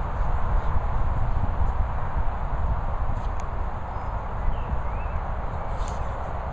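A dog pushes and bumps a plastic ball across grass.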